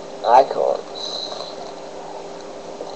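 A plastic wrapper crinkles in a hand.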